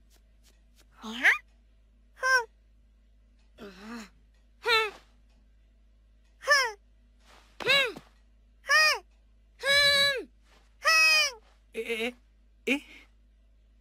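A kitten meows repeatedly in high, squeaky cries.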